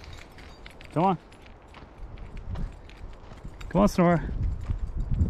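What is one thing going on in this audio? A dog yelps and whines in short, high cries.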